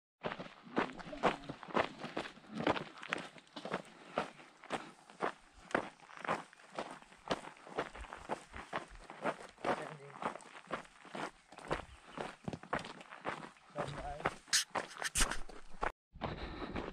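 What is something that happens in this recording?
Footsteps crunch on loose gravel at a steady pace.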